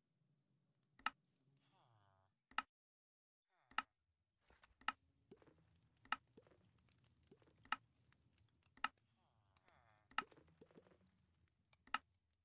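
Short, sharp clicks sound now and then as game items are picked up and placed.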